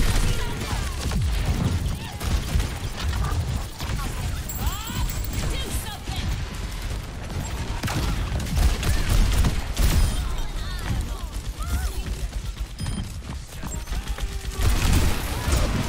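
Explosions burst with deep rumbles in a video game.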